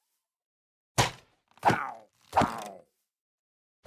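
A sword strikes a creature with sharp thuds.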